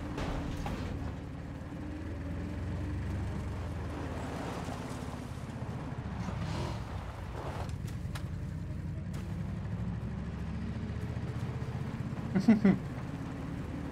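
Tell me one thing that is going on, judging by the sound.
An armoured car engine rumbles nearby.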